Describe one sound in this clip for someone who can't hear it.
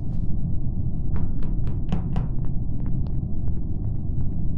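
Soft quick footsteps patter along.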